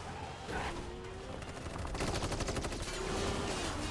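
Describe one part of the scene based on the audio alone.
A motorcycle engine roars.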